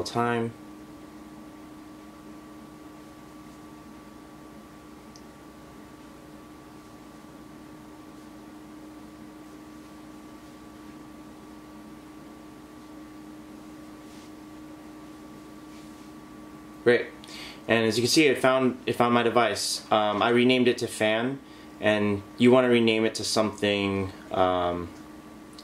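An air purifier hums steadily.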